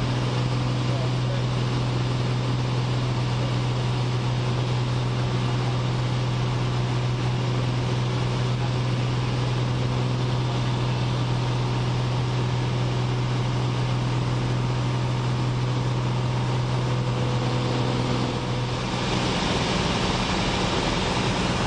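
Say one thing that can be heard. A small plane's engine drones loudly and steadily from inside the cockpit.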